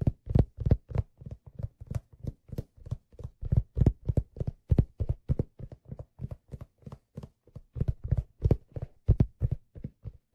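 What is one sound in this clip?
A man beats a drum rapidly and steadily, close by.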